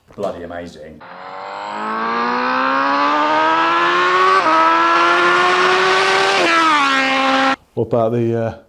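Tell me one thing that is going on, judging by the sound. A motorcycle engine rises in pitch as it approaches at speed and roars past.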